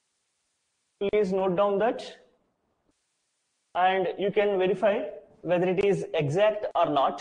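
A man lectures calmly, close by.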